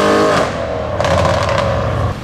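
A car exhaust pops and crackles.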